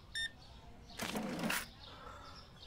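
A cash register drawer slides open.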